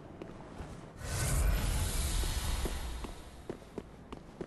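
Fire roars in a burst.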